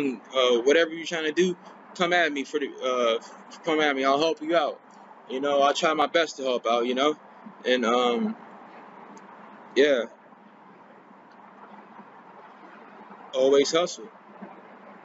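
A young man talks calmly close to the microphone, in short bursts with pauses.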